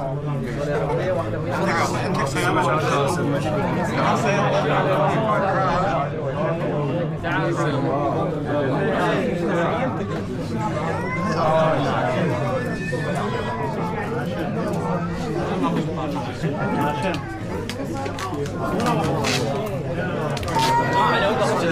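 A crowd of men talk over one another close by.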